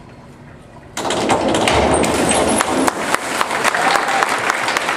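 A diver splashes into the water.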